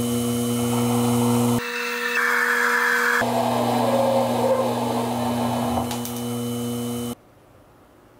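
A small metal lathe motor whirs.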